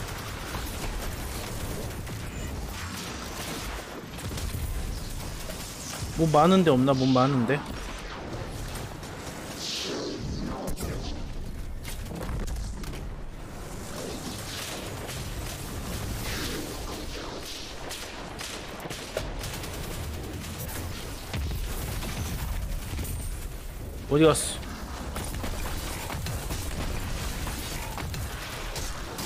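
Gunfire and energy blasts crackle from a video game.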